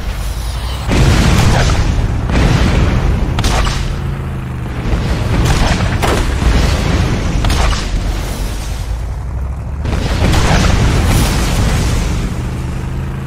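Explosions boom loudly, again and again.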